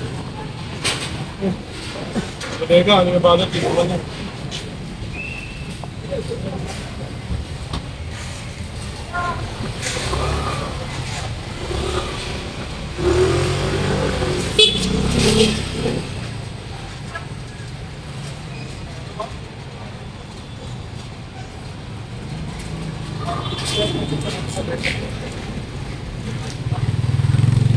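Street bustle murmurs steadily outdoors.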